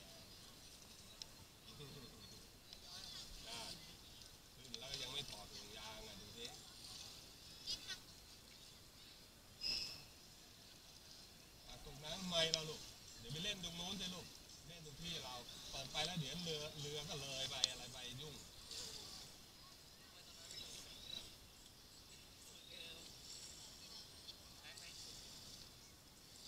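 Water laps and ripples against a raft.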